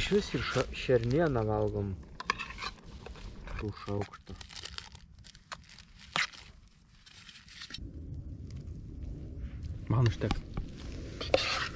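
A metal spoon scrapes and clinks against a cooking pot.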